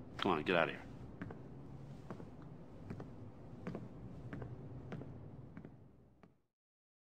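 Footsteps walk slowly across a wooden floor.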